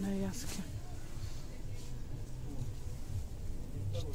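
Knitted fabric rustles softly as a hand handles it.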